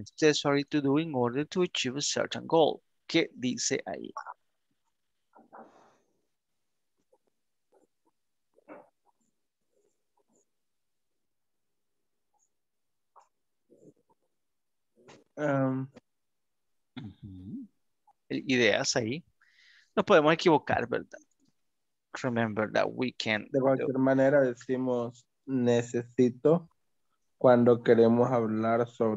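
A man speaks calmly over an online call, with pauses.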